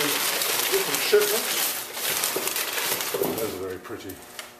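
Cardboard rustles and scrapes as a box is handled.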